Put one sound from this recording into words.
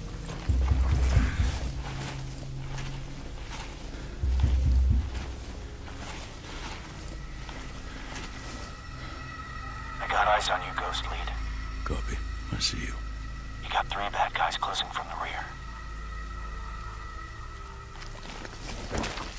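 Clothing and gear rustle as a person crawls over dirt and leaves.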